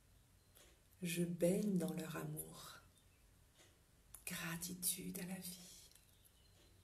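A middle-aged woman speaks softly and calmly close to the microphone.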